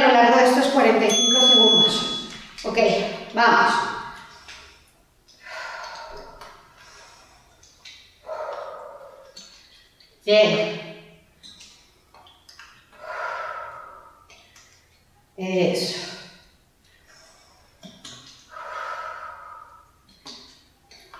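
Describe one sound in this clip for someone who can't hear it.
A woman speaks energetically into a close microphone.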